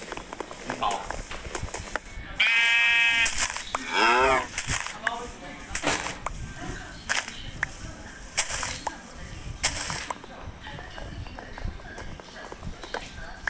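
Short crunching thuds sound as blocks are dug and placed.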